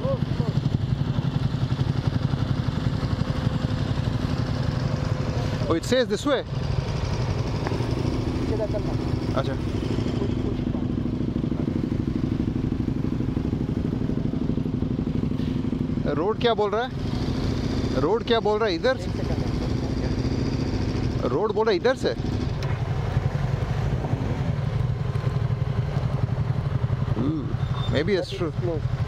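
Motorcycle engines idle with a steady low rumble.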